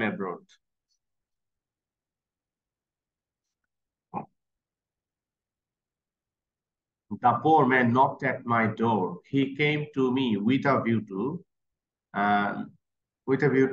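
A man speaks calmly over an online call, pausing now and then.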